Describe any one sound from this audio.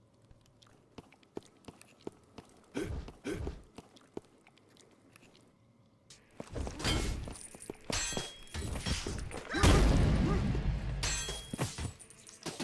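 Weapons whoosh and clash in quick bursts.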